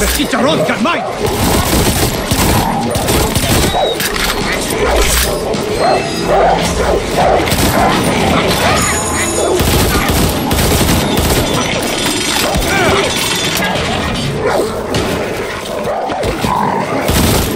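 Dogs snarl and bark close by.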